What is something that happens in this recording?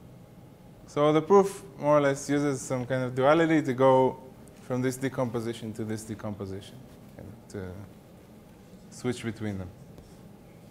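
A man speaks calmly, explaining as if lecturing.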